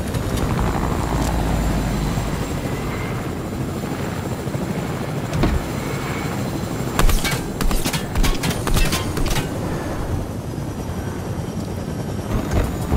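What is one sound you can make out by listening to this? A helicopter's rotor drones steadily close by.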